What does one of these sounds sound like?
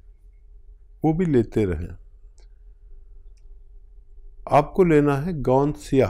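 A middle-aged man speaks calmly and slowly into a close microphone.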